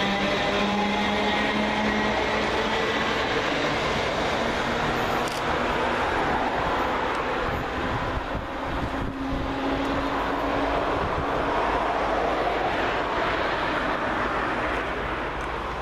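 An electric train pulls away and rumbles off into the distance.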